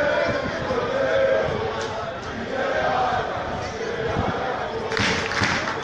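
A crowd in an open-air stadium chants and sings.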